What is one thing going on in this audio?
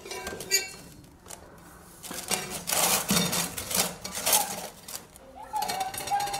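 A metal can knocks and rattles inside a plastic bucket.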